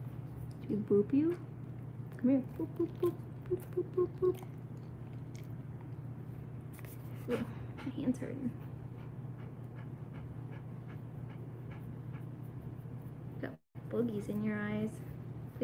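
A dog pants softly close by.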